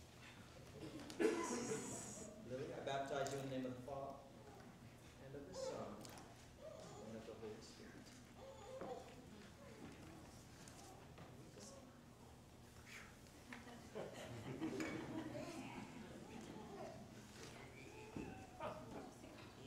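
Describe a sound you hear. A man speaks calmly and steadily in a large echoing hall.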